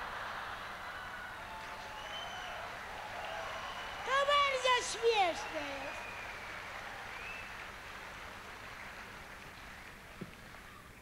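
A large crowd laughs and applauds.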